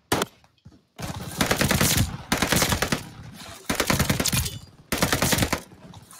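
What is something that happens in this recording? A rifle fires several loud shots in quick bursts.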